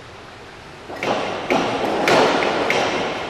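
A diving board bangs and rattles as a diver bounces.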